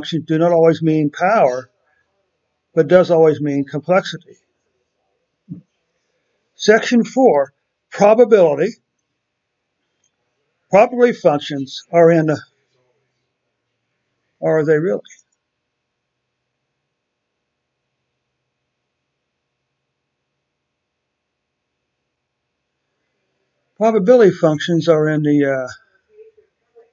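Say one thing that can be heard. A man speaks calmly through a microphone, explaining in short phrases with pauses.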